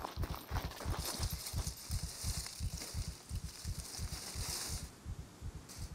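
Leafy branches rustle as someone pushes through bushes.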